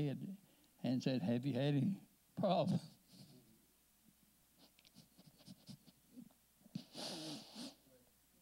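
An elderly man speaks in short, halting phrases.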